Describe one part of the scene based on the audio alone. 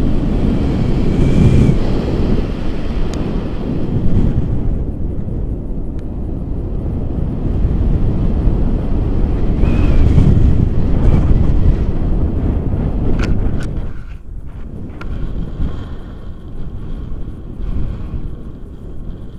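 Strong wind rushes and buffets loudly past the microphone.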